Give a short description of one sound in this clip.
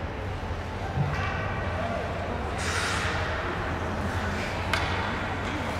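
Hockey sticks tap and clack on the ice.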